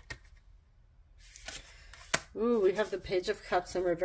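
A card slides and taps down onto other cards.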